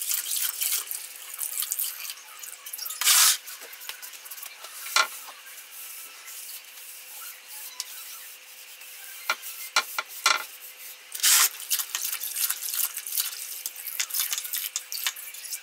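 Wet fabric is wrung out and water drips into a basin.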